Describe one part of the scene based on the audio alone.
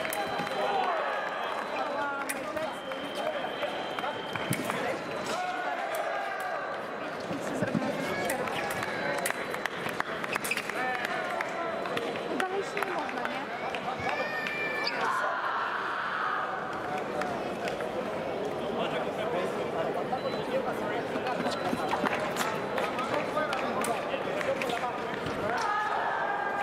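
Fencers' feet stamp and shuffle on the floor.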